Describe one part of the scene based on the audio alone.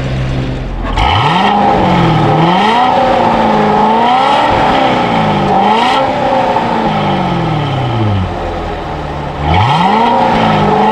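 A parked V8 sports car engine revs up and drops back again and again.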